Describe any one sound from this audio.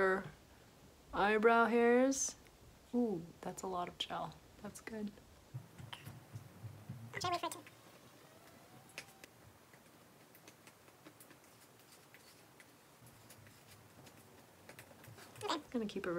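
A young woman talks close to a microphone with animation, in short bursts and pauses.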